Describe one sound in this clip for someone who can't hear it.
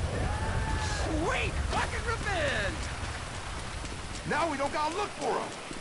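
A man shouts angrily at close range.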